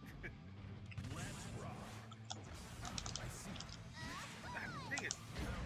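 Fighting game sound effects clash and strike with sharp hits.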